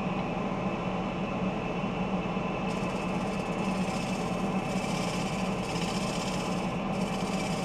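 A bowl gouge cuts into a spinning block of wood, peeling off shavings.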